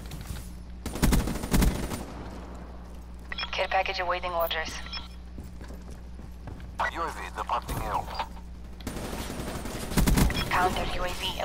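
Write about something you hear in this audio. An automatic rifle fires in bursts in a video game.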